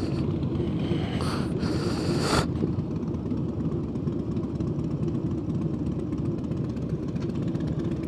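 A motorcycle engine idles with a deep, steady rumble close by.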